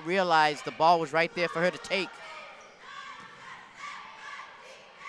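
Sneakers squeak on a hard court in an echoing gym.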